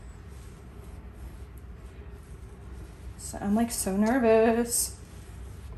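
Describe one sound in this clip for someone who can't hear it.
Soft fabric rustles as a woollen blanket is handled.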